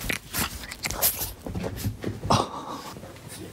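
Bedding rustles and thumps close by.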